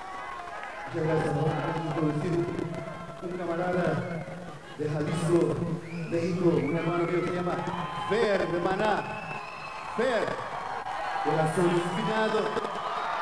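A band plays loud music.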